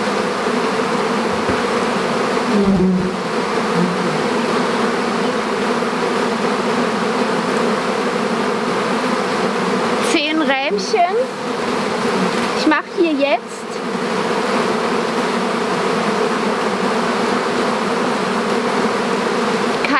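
Bees buzz in a steady, dense hum close by.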